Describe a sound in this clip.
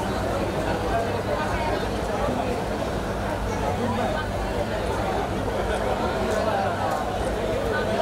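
A crowd of women and children chatters throughout.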